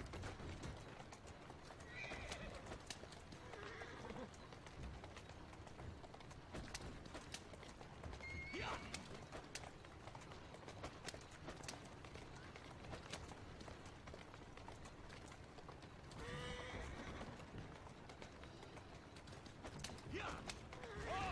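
Horse hooves clatter on a cobbled street.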